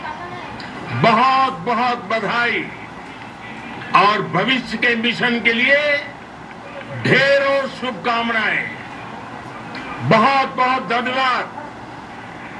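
An elderly man speaks calmly through a television loudspeaker.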